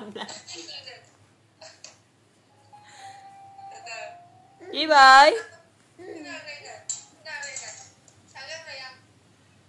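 A young man laughs softly and talks to a baby.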